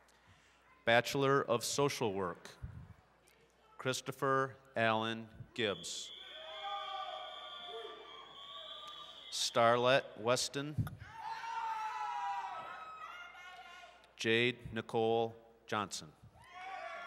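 A man reads out names through a loudspeaker in a large echoing hall.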